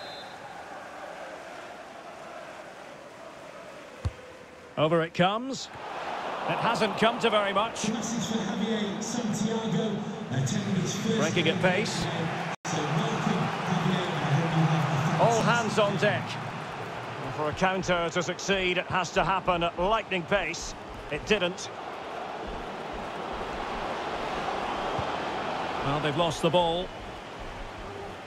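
A large crowd murmurs and cheers throughout.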